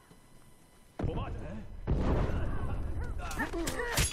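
An explosion booms and rumbles nearby.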